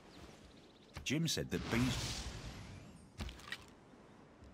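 A shimmering magical chime rings out and fades.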